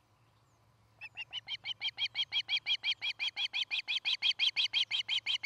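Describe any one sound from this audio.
A bird of prey calls close by with rapid, shrill, repeated chirps that grow louder.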